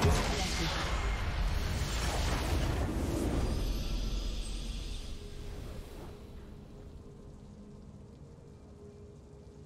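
A video game victory fanfare swells and then fades.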